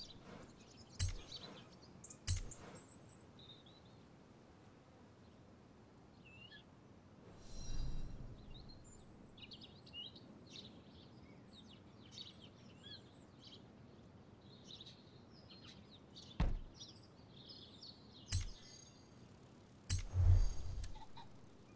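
Game menu sounds click and chime as options are picked.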